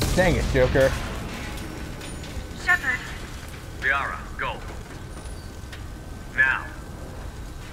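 A man speaks urgently in short bursts.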